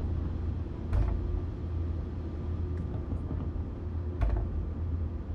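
A sliding train door thuds as it opens.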